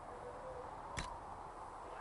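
A menu selection clicks.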